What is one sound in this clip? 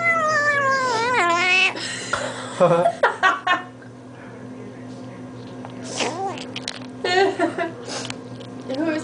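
A kitten squeals and mews while eating.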